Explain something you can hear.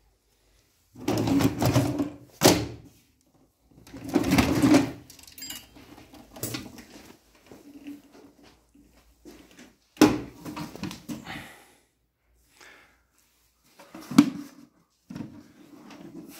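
Hard plastic casings clatter and knock as they are handled close by.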